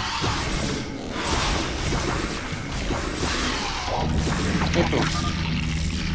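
Gunfire and creature screeches from a video game battle crackle and clatter.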